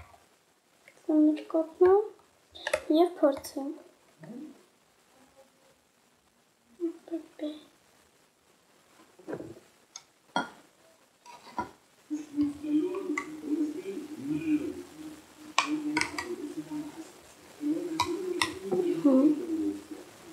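A young girl speaks softly, close to the microphone.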